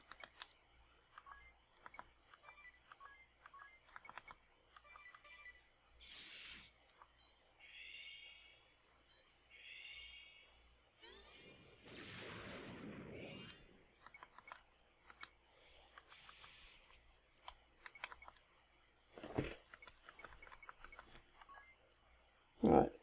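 Menu cursor clicks tick quickly.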